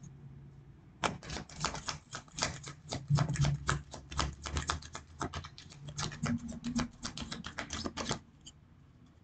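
Cards riffle and shuffle in a woman's hands.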